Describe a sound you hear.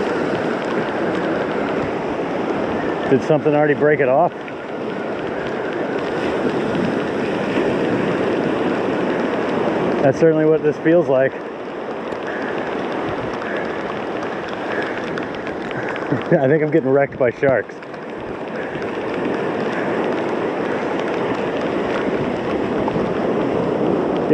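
Small waves wash steadily onto a sandy shore.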